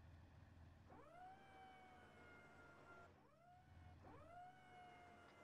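A vehicle engine revs up with a rising whine.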